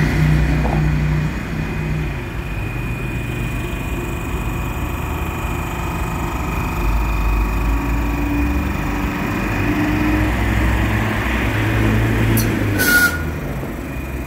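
A tram rumbles past close by and pulls away.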